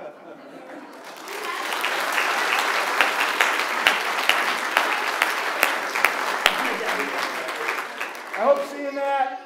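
A crowd applauds in a large room.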